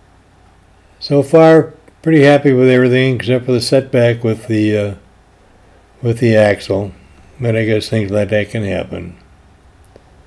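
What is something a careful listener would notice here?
A man talks loudly and with animation close by.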